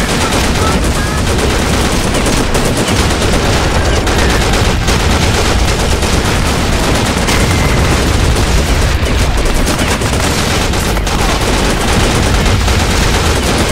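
Explosions boom and rumble without pause.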